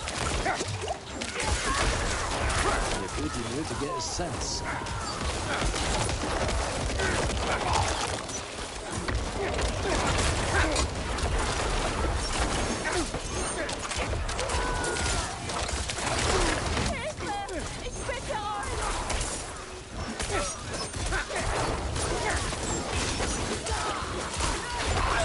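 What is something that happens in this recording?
Game combat sounds crash and boom with blasts and impacts.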